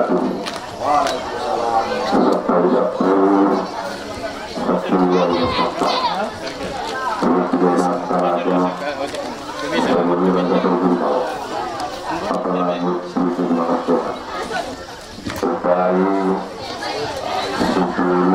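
An elderly man chants in a steady, sung voice through a microphone and loudspeaker, in phrases with short pauses.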